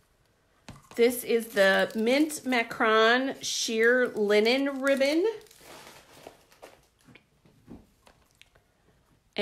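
Plastic sheeting crinkles softly under hands.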